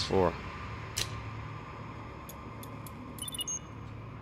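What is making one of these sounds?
A detonator clicks.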